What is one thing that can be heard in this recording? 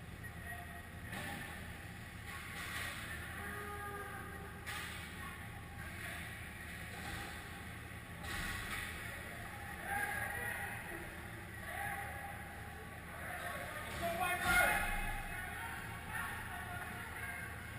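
Ice skates scrape across the ice in a large echoing rink.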